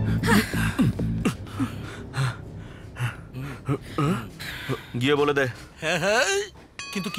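A man talks loudly with animation.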